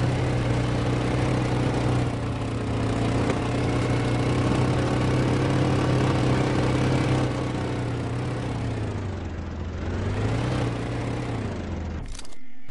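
An ATV engine drones while driving.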